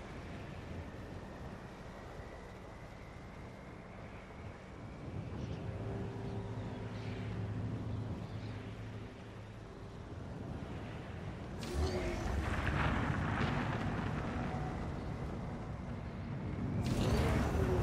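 A vehicle engine rumbles and hums as it drives over rough ground.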